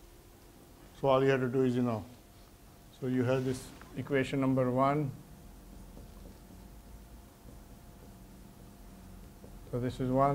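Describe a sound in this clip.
A middle-aged man speaks calmly, lecturing.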